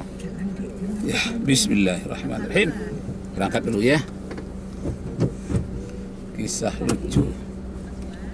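A middle-aged man speaks close by, calmly.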